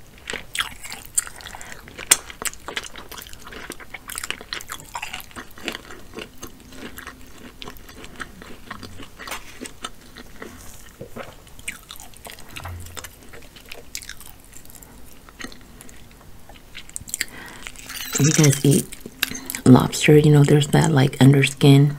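Crab shells crack and snap close by.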